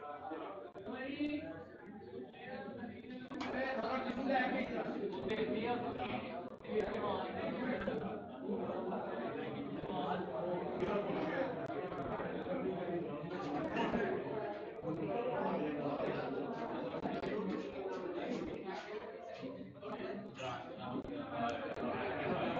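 A crowd of men chatter and murmur nearby.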